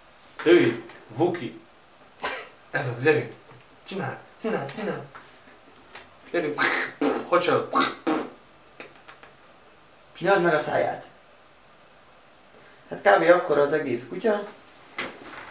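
A man talks close by in a casual, animated voice.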